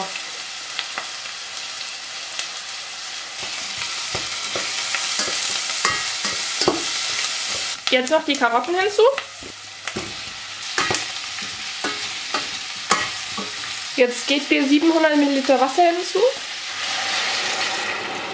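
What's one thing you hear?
Food sizzles steadily in a pot.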